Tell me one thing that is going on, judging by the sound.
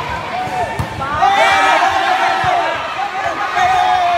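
A volleyball thuds as players hit it.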